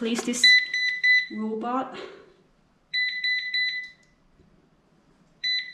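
A small electronic device beeps rapidly in short bursts.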